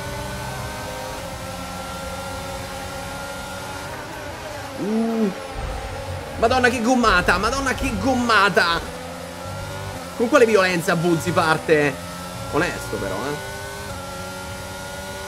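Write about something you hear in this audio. A racing car engine whines at high revs, its pitch rising slowly between gear shifts.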